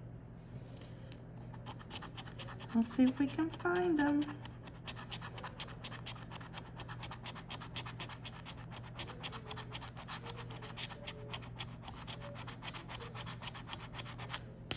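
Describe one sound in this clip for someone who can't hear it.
A coin scratches rapidly across a scratch-off ticket.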